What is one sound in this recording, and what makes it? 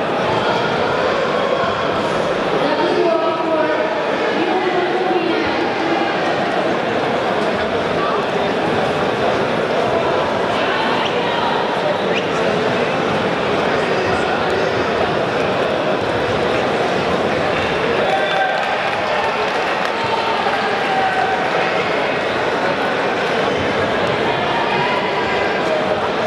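Men shout out from the crowd now and then.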